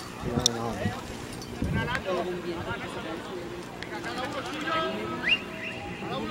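Young men shout and call to each other outdoors across an open field.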